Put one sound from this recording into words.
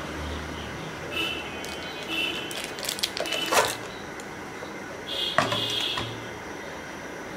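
Foil crinkles and rustles.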